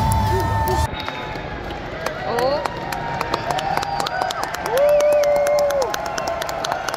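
A large arena crowd cheers and whistles loudly.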